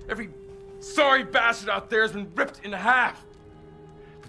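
A man shouts angrily close by.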